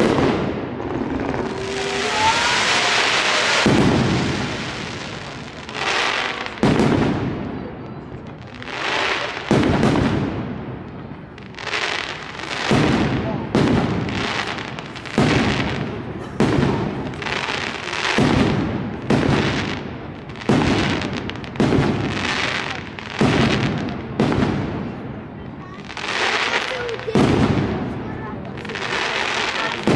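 Fireworks crackle and fizz high overhead.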